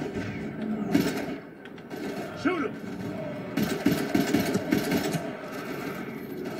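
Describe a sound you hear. Gunfire crackles in rapid bursts from a video game through a loudspeaker.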